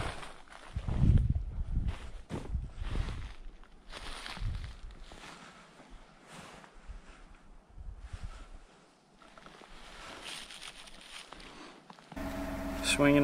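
Footsteps crunch through dry leaves and thin snow.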